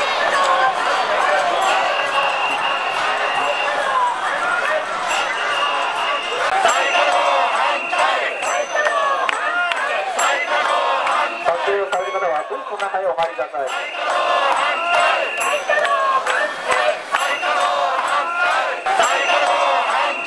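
A large crowd chants and shouts together outdoors.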